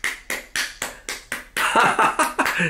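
A man claps his hands quickly.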